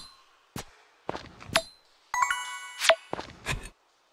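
A hammer strikes rock again and again in a game, with a sharp crack each time.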